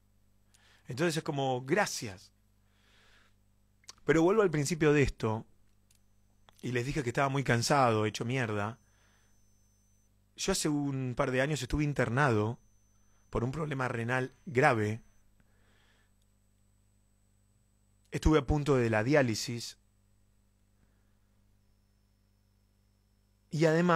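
A man speaks close into a microphone, calmly, in short bursts with pauses.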